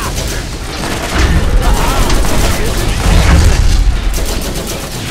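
A rifle fires in quick bursts with deep booming blasts.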